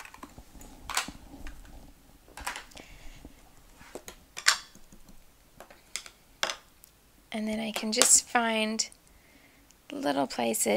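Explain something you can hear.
Small plastic items tap and click on a hard countertop.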